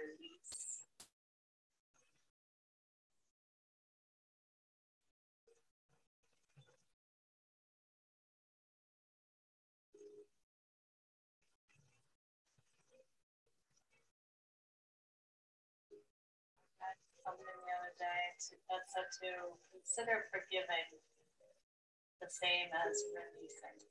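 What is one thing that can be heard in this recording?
A woman speaks calmly, with long pauses.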